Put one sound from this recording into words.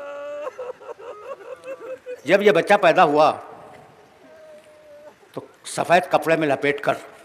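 An elderly man speaks with passion into a microphone, his voice ringing out over a loudspeaker.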